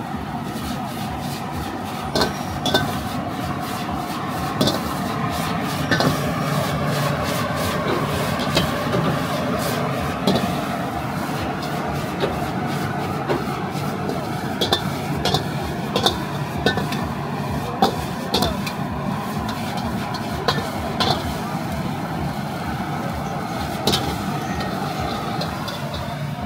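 Food sizzles loudly in a hot wok.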